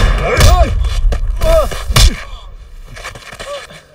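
A body thumps hard onto the ground.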